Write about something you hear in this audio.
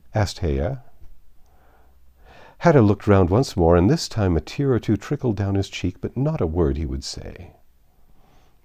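An older man reads aloud calmly and clearly, close to a microphone.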